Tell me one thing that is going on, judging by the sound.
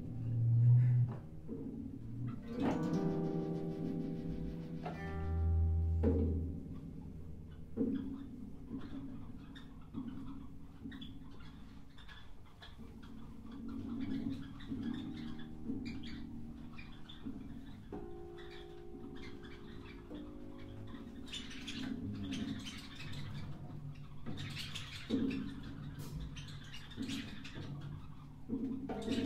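A drummer taps lightly on cymbals and drums.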